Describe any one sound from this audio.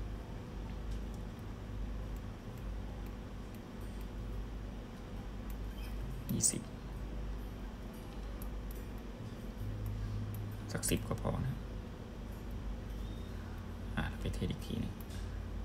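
Buttons on a small device click softly under a thumb.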